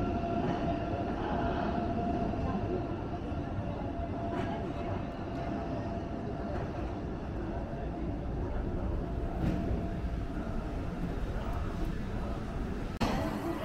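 A high-speed train rolls out of the station and fades into the distance.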